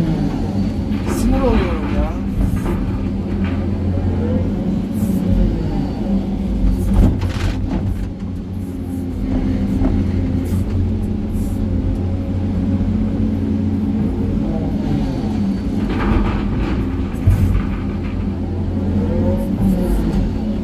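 Hydraulics whine as an excavator arm swings and lifts.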